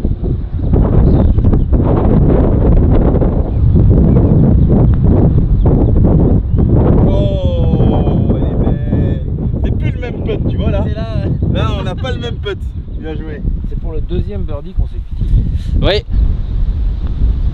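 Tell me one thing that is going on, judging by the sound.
Wind blows hard against the microphone outdoors.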